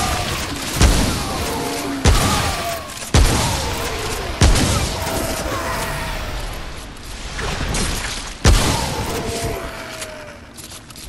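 Creatures screech and shriek.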